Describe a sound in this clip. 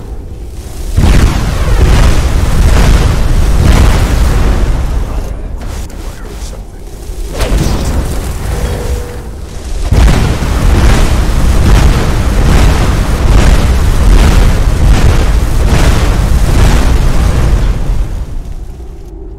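Fire blasts whoosh and rumble loudly.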